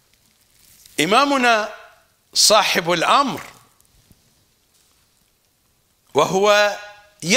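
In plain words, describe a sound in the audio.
An elderly man recites in a slow, melodic voice close to a microphone, with pauses between phrases.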